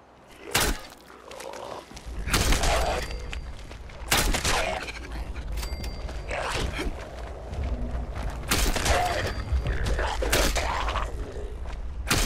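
Heavy blows strike with loud thuds.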